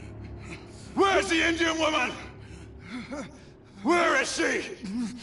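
A man shouts forcefully.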